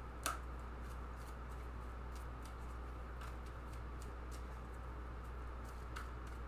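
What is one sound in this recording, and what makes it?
Playing cards shuffle and tap softly in a woman's hands.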